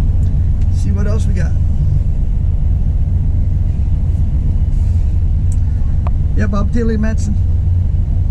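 A middle-aged man talks briefly on a phone close by.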